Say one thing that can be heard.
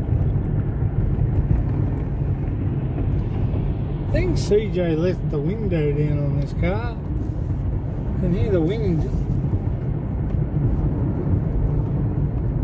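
A car drives along a road with a steady low rumble.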